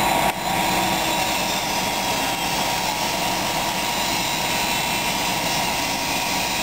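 A power saw grinds loudly through metal with a steady high whine.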